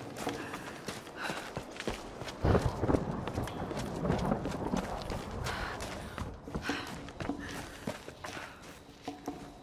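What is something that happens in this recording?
Footsteps crunch over leaves and gravel.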